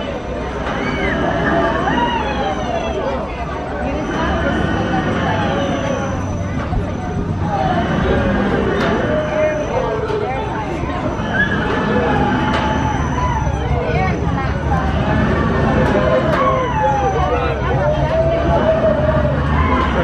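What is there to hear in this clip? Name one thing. A large ride's machinery rumbles and whooshes as it swings back and forth.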